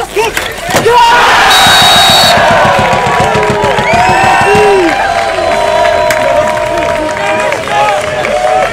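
Young men shout and cheer excitedly nearby, outdoors.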